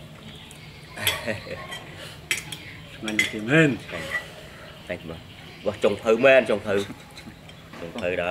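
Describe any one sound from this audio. Middle-aged men talk and laugh together nearby.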